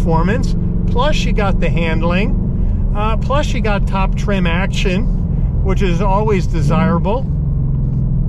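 An elderly man talks with animation close to a microphone.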